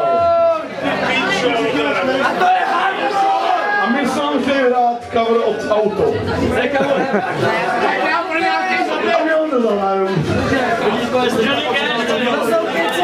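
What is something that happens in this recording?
A man shouts and talks into a microphone over loudspeakers.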